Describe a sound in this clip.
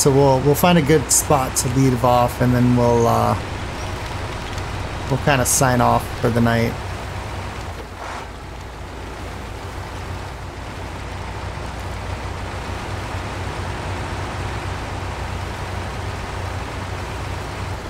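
A heavy truck engine rumbles steadily at low revs.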